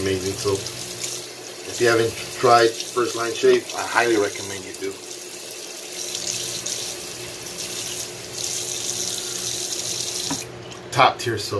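Water splashes onto a face.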